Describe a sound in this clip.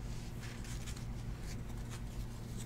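Hands shuffle and slide a stack of trading cards.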